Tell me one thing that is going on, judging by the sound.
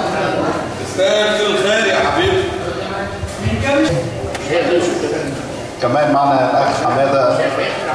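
A man speaks with animation through a microphone over a loudspeaker.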